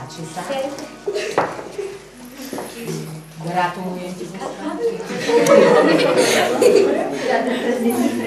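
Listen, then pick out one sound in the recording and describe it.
Young girls talk and chatter excitedly.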